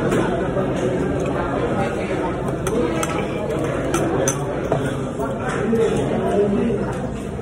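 A person chews food with the mouth closed.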